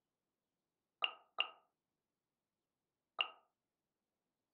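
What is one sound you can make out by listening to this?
Short soft menu clicks sound a few times.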